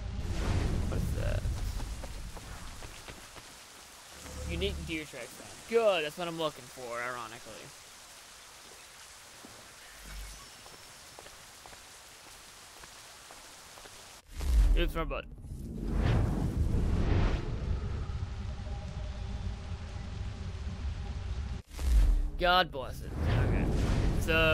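Footsteps tread softly over grass and rock.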